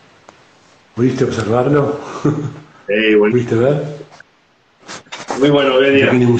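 An older man talks over an online call.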